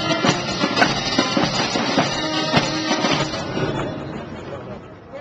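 A brass band plays loudly outdoors.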